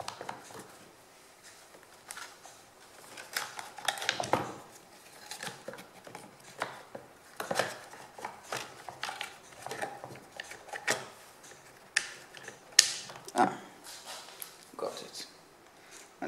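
Plastic parts click and knock as a chainsaw is taken apart by hand.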